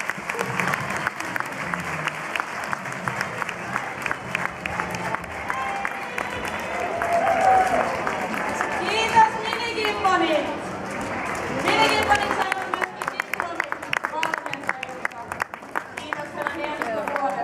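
Many hands clap in quick bursts.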